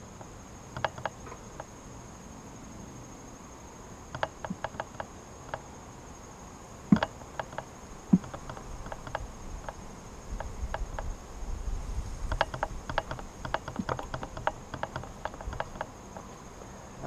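Wooden hive frames knock and scrape as a beekeeper handles them.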